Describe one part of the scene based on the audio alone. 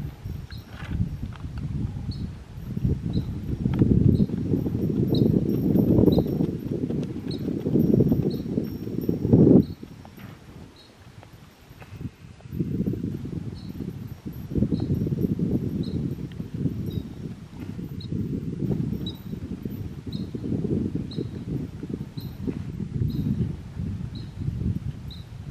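A horse walks with soft hoof thuds on dirt.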